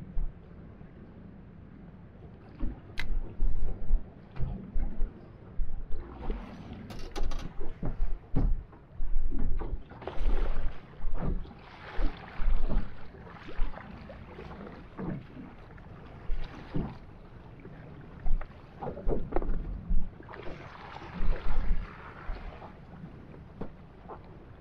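Wind blows over open water.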